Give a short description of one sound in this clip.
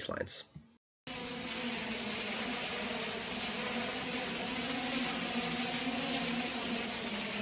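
Large fans blow with a steady rushing roar.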